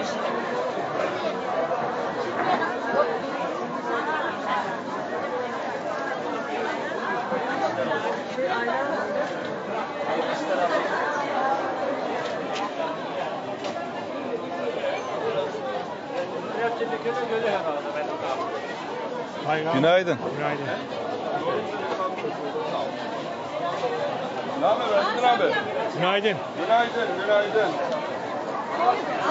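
A crowd of men and women chatters all around in a busy, echoing hall.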